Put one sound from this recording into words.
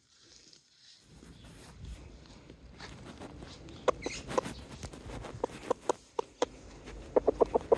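A towel rustles against feathers.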